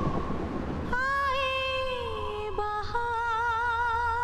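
A young woman sings a melody clearly and close.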